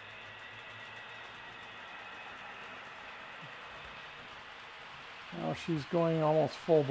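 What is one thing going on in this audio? A model train locomotive hums softly as it rolls along the track.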